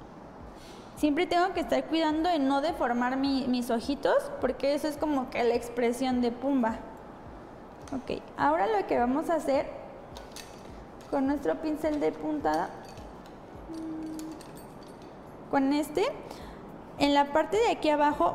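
A woman speaks calmly close to the microphone.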